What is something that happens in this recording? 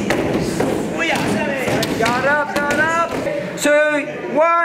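Several people shout sharply as they strike.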